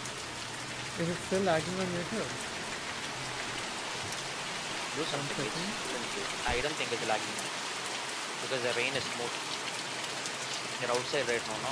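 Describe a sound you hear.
A young man speaks casually into a close microphone, in short bursts.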